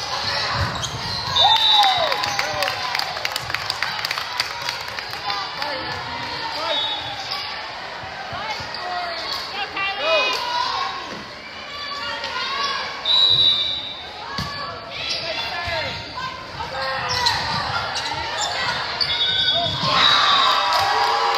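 A volleyball smacks off players' arms and hands.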